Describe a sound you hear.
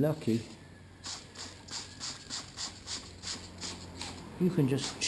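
A spray bottle squirts water in quick bursts.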